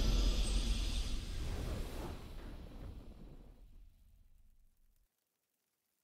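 A deep triumphant game fanfare booms and fades away.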